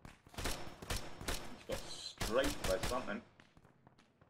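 Rifle shots ring out in quick succession, close by.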